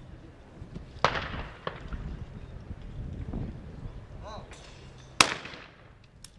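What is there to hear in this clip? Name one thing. A shotgun fires loud, sharp shots outdoors.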